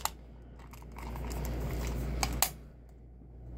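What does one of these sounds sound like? A plastic toy clicks and rattles in a hand.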